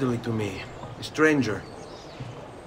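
A man asks a question in a calm voice.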